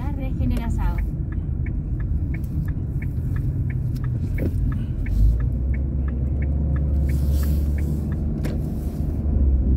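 A turn signal clicks steadily inside a car.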